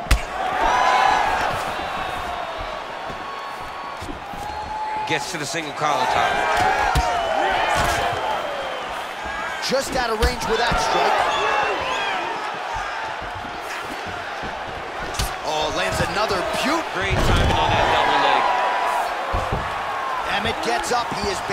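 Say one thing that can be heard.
Punches land with sharp thuds.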